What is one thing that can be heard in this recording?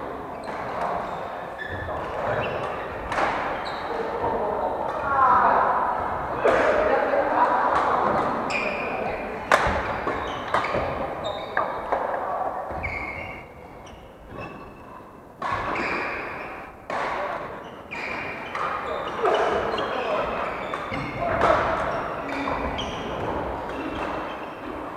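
Badminton shuttlecocks are struck with sharp pops of rackets.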